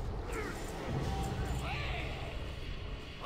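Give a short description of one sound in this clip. A bright chime rings out with a shimmering burst.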